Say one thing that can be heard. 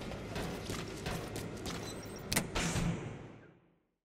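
Metal gear rattles and clinks with each step.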